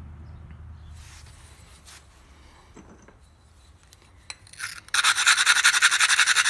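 A stone edge scrapes with a rough, rhythmic grinding.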